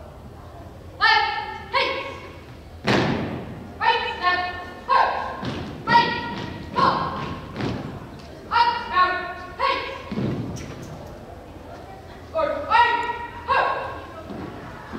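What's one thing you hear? A man shouts loud drill commands in a large echoing hall.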